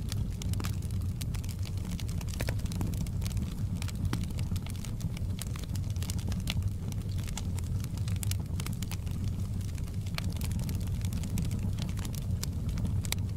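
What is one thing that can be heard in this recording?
Burning logs crackle and pop in a fire.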